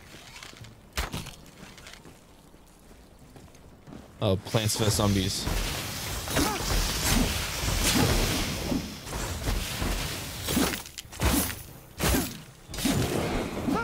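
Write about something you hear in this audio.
Blows and impacts thud and crack in a fight.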